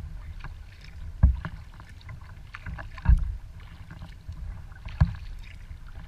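Water laps and splashes against a kayak's hull.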